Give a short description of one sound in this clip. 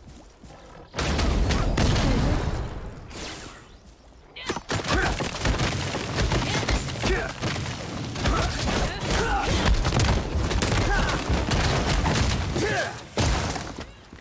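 Magic blasts and crackling hits burst loudly during a fight.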